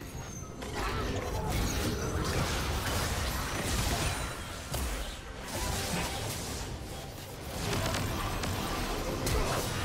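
Magic spells burst and whoosh in a hectic fight.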